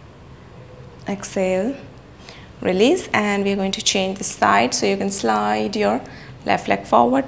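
A young woman speaks calmly and clearly into a nearby microphone, as if giving instructions.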